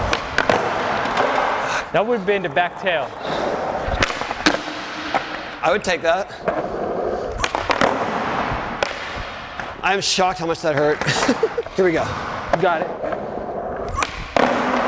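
Skateboard wheels roll over smooth concrete.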